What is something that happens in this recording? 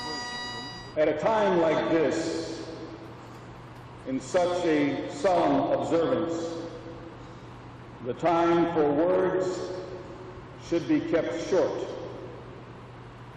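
A man speaks slowly and formally into a microphone.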